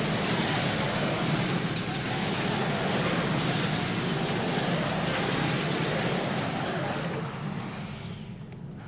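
Fantasy battle sound effects clash and crackle busily.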